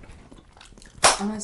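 A young woman speaks briefly up close.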